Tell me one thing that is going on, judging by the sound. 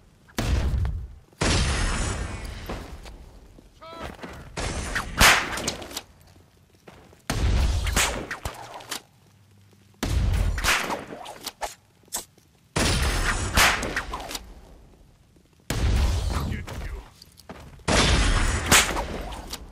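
Heavy punches and kicks thud in a brawl, in bursts.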